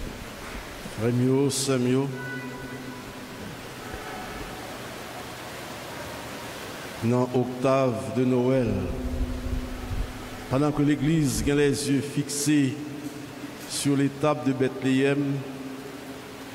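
An elderly man chants in a sung voice through a microphone, echoing in a large hall.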